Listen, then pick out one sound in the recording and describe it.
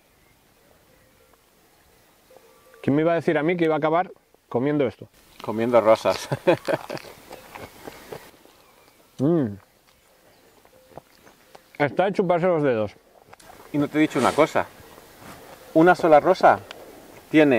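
A second man answers casually, close by.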